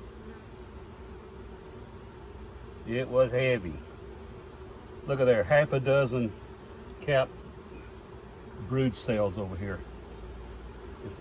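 Bees buzz steadily.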